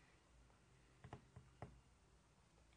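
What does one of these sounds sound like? Pages of a book rustle.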